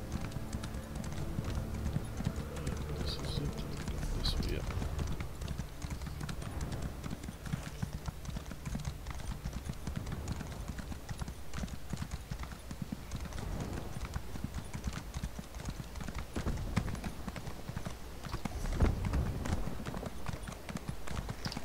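A horse's hooves clop steadily on a path.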